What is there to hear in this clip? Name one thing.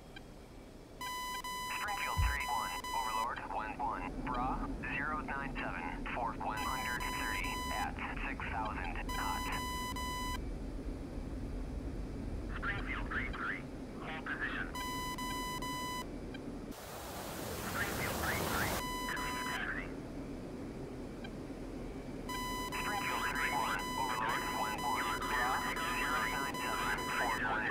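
A twin-engine fighter jet roars on its takeoff run.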